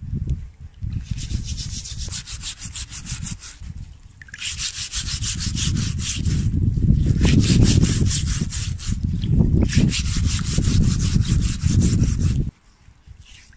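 A wire scrubber scrapes rapidly back and forth over wet hide.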